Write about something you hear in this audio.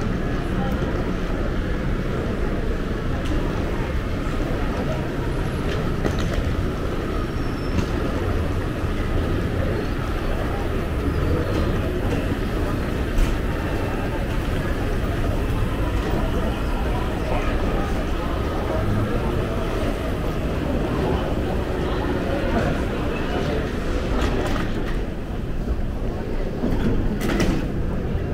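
Footsteps tap on a hard floor while walking through a large echoing hall.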